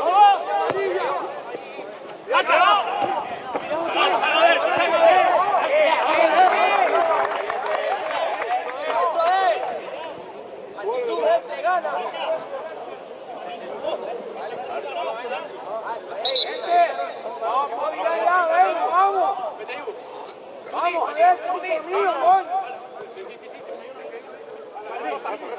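Young men shout and call to one another across an open pitch.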